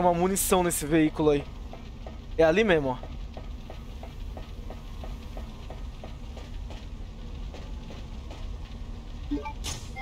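Footsteps run quickly across a metal walkway.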